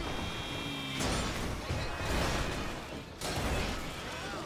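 A truck crashes into a pole with loud thuds.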